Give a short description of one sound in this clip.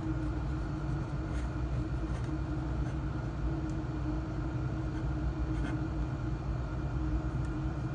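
A desoldering gun hums steadily.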